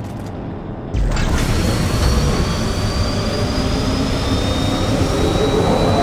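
A machine buzzes and crackles with electric sparks.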